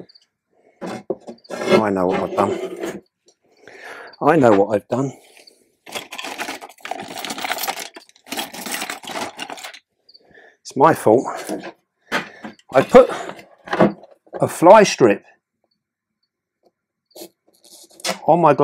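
An older man talks calmly and close by, with pauses.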